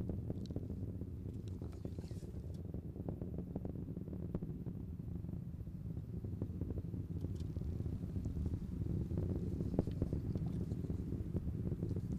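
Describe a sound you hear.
A rocket engine roars with a deep, steady rumble far overhead.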